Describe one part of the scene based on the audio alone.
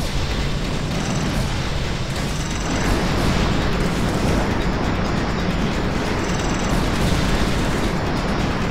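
Loud rumbling explosions and blasts boom continuously.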